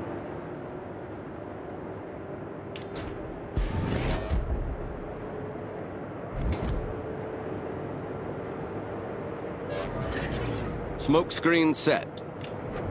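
Water rushes and splashes along a moving ship's hull.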